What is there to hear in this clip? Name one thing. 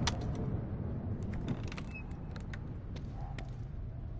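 A wooden crate lid swings open.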